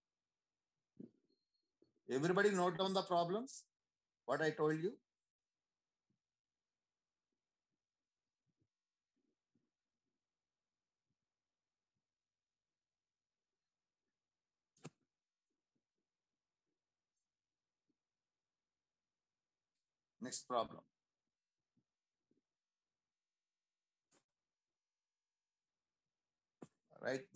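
A man speaks calmly through an online call, in short bursts with long pauses.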